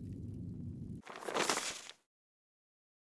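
A paper scroll unrolls with a rustle.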